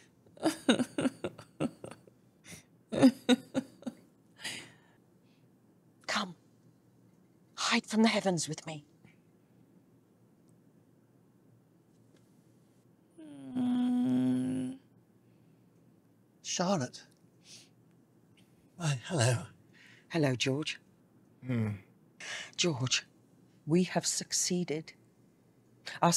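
A woman talks with amusement close to a microphone.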